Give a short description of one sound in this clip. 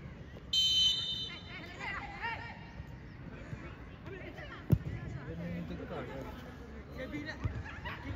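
Young players shout across an open field.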